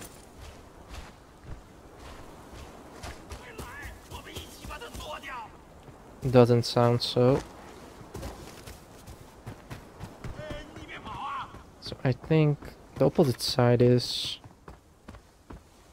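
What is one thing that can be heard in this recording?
Footsteps tread steadily on dirt and stone.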